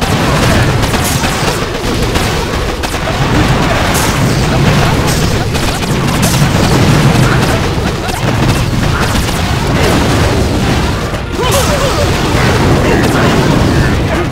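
Explosions boom and crackle again and again.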